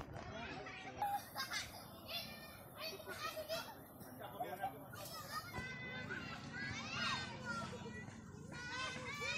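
Children shout and chatter at a distance while playing.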